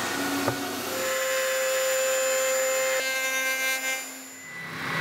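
A router whines loudly while cutting wood.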